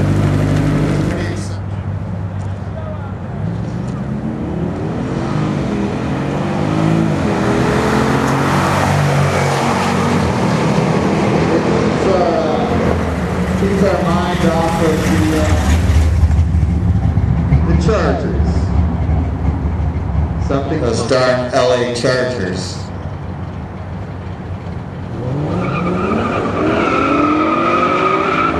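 Car engines rumble loudly and rev hard, rising in pitch as they accelerate.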